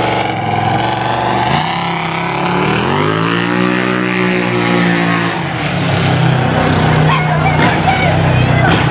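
A crowd of people chatters along the street outdoors.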